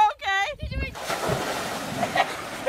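Water splashes loudly as someone lands in it.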